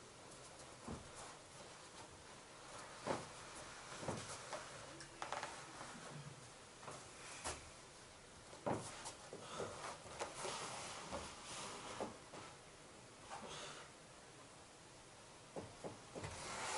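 Bare feet thud and shuffle on foam mats.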